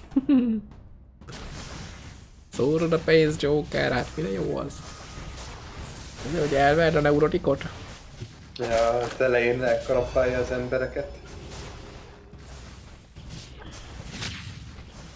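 Game fighting effects clash and crackle.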